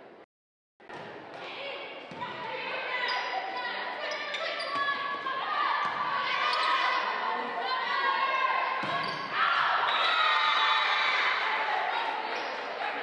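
Young women on a team shout and call out to each other loudly.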